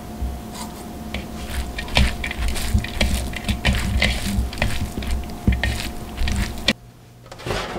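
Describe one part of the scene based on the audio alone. Hands squish and mix soft food in a bowl.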